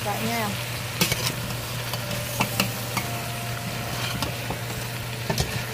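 A metal spoon clinks against the side of a pot.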